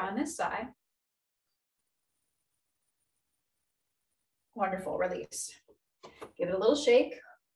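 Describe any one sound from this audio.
A woman speaks calmly and clearly into a microphone, giving instructions.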